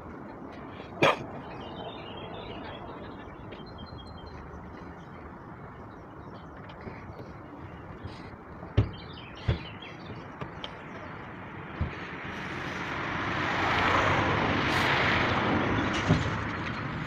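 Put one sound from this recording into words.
Metal clanks and bangs now and then across a construction site.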